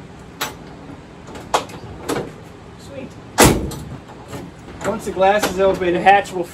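Metal latch clicks and clunks on a vehicle's tailgate.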